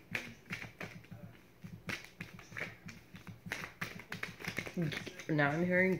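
A deck of cards is shuffled by hand.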